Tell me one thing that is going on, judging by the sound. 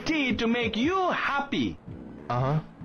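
A woman speaks in a friendly, animated voice close by.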